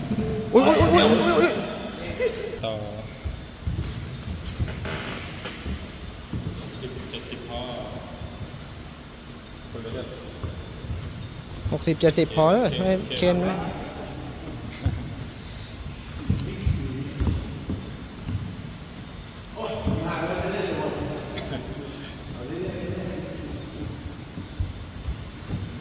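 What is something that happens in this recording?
Bare feet shuffle and thump on a foam mat.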